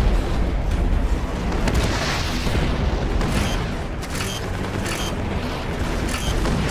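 A tank's gun fires in sharp bangs.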